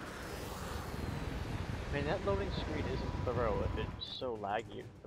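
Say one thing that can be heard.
Jet thrusters roar loudly.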